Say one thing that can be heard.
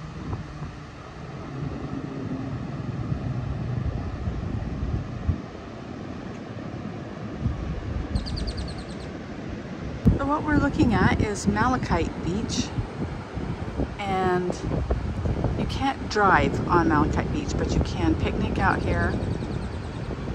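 Ocean waves wash onto the shore in the distance.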